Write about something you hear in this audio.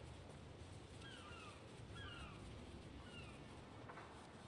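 A bird of prey screeches several times.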